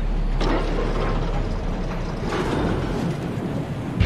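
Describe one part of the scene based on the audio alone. A metal lift rumbles and clanks as it moves.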